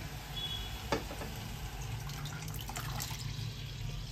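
Liquid pours into a sizzling pan.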